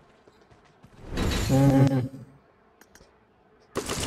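A short victory fanfare plays.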